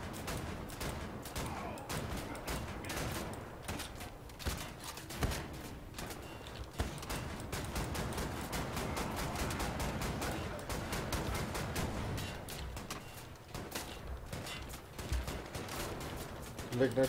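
A gun fires in rapid bursts with sharp bangs.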